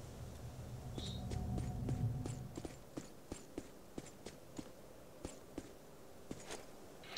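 Heavy armored footsteps thud quickly on hard ground.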